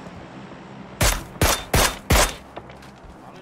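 Four loud rifle shots ring out in quick succession.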